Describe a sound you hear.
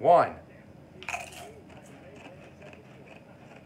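Crunchy chips crack and crunch while being chewed.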